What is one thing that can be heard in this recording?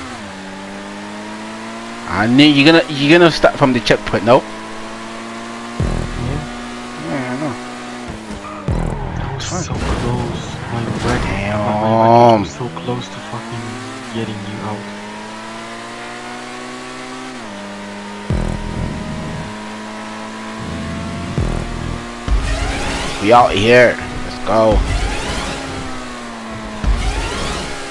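A sports car engine drones steadily, its pitch rising and falling as it races.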